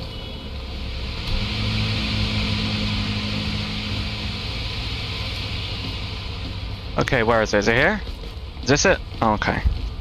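Footsteps tap on a paved street.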